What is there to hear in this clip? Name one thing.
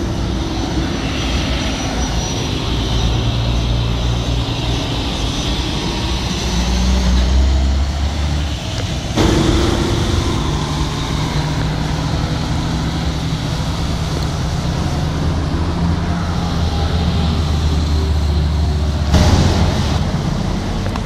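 Traffic rumbles along a road outdoors.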